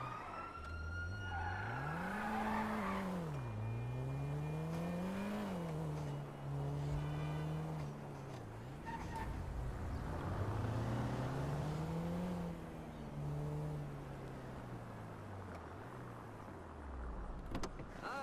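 A small car engine revs up and down as the car drives.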